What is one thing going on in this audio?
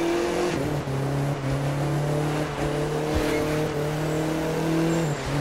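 A racing car engine roars at high revs, shifting gears as it speeds up.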